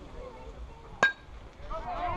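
A metal bat cracks sharply against a ball.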